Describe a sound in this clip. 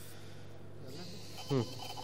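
A thin metal tool scrapes against a rough surface.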